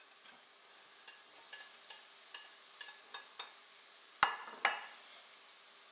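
A spatula scrapes and taps against a metal pan.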